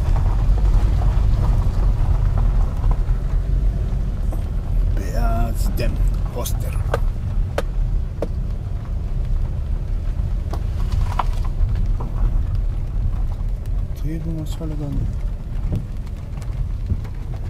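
Tyres crunch and rattle over a gravel road.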